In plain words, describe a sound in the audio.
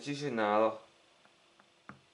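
A jigsaw piece taps softly onto a table.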